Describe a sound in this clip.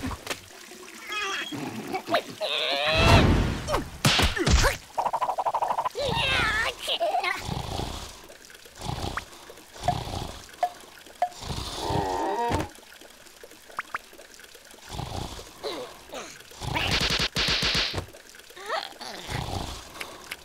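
Small cartoon creatures babble and squeal in high, squeaky voices.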